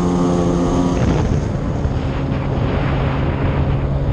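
Water splashes and churns beneath a jet ski.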